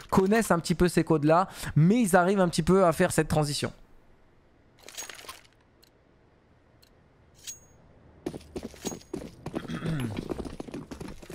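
A man speaks with animation into a close microphone.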